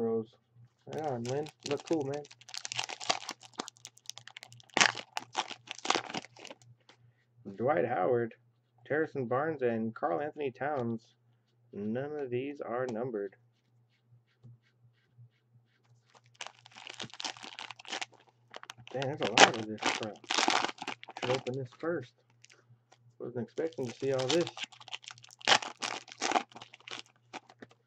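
Foil card packs crinkle and tear.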